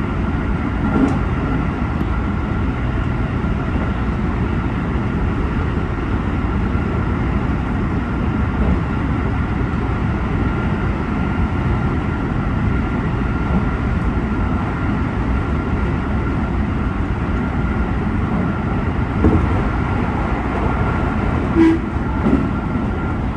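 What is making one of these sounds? Train wheels clatter over rail joints now and then.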